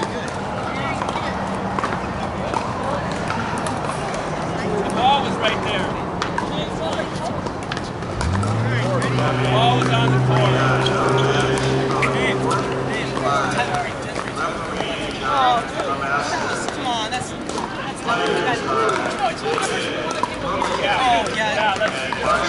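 A crowd of men and women chatter and call out nearby and across open courts.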